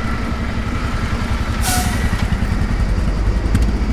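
A motorcycle rides past.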